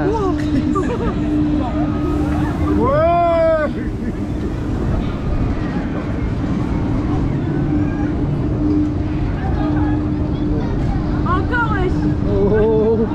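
A fairground ride rumbles and whooshes steadily around.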